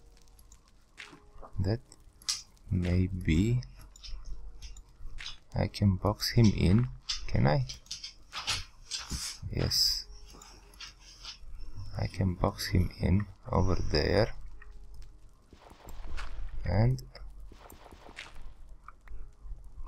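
Dirt crunches in short bursts as blocks are dug and placed in a game.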